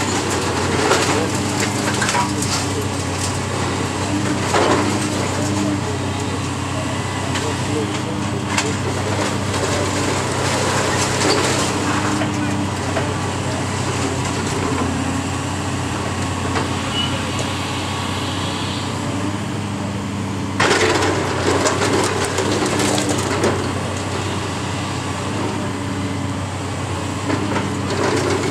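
Hydraulics whine as an excavator arm moves.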